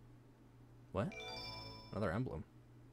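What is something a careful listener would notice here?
A short electronic jingle chimes.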